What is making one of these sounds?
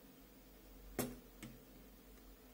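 A metal blade clicks against a glass bulb.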